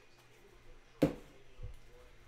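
A stack of cards taps down on a table.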